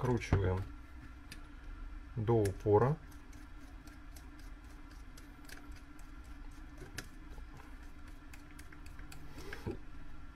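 A ratchet screwdriver clicks rapidly as it turns.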